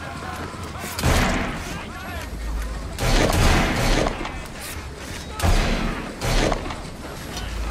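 Heavy blows land in a short, violent scuffle.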